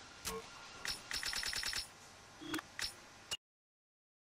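Menu beeps and clicks sound in a video game.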